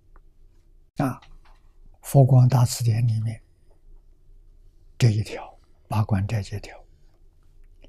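An elderly man speaks calmly and slowly, close to a microphone, with long pauses.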